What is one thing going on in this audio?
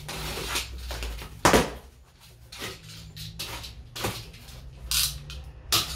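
Packing tape rips off a cardboard box.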